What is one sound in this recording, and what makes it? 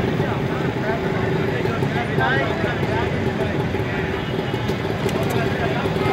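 Many voices chatter in a crowd nearby.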